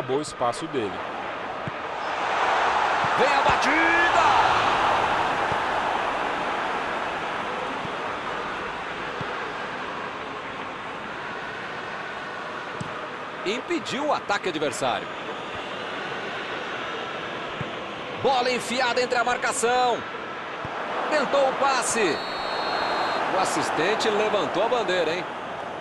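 A large stadium crowd roars steadily, swelling loudly for a few seconds.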